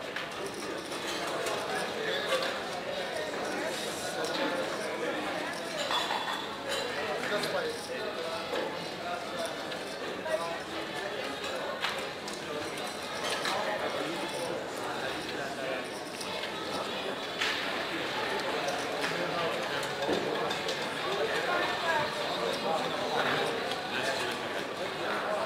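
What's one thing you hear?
Plastic chips clack and click as they are stacked and pushed across a table.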